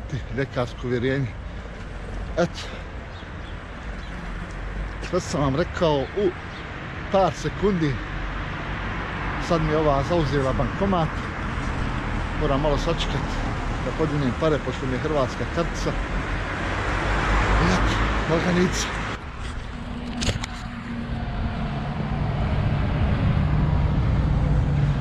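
Traffic rumbles by on a nearby road.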